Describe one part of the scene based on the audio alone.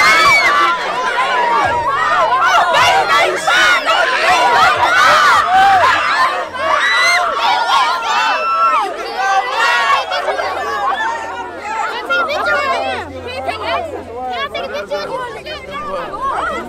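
A crowd of young people cheers and screams excitedly outdoors.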